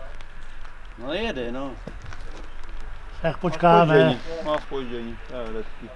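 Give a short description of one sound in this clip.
Elderly men talk nearby outdoors.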